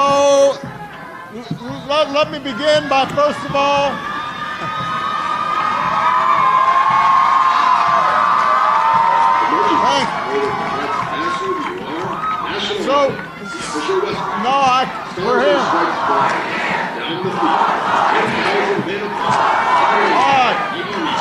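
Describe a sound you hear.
A man speaks through a microphone to an audience, calmly and then with animation.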